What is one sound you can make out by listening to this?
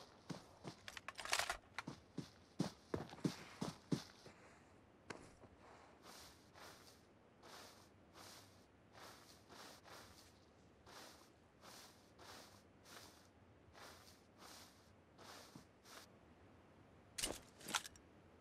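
A game character crawls through grass with rustling steps.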